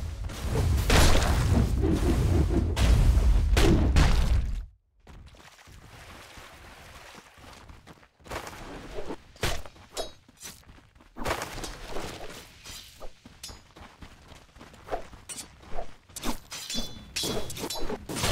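Game combat effects clash and crackle loudly.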